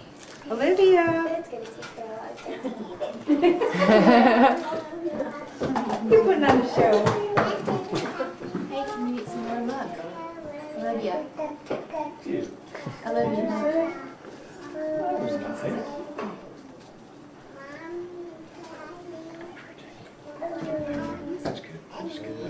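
A toddler babbles and squeals nearby.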